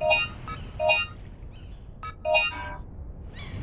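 A game menu beeps.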